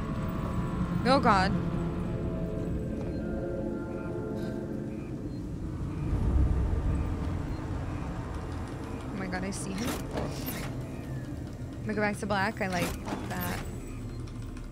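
A young woman talks calmly into a microphone.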